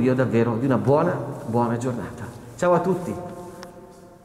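A middle-aged man speaks calmly close to a microphone, his voice muffled and echoing in a large hall.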